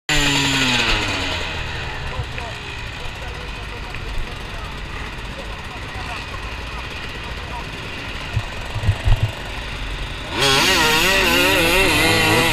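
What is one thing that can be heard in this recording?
A motorcycle engine idles and revs close by.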